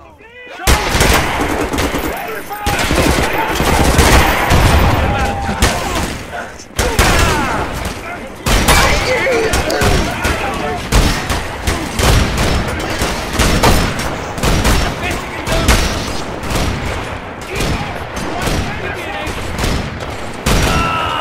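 Rapid gunfire rattles and echoes in a stone tunnel.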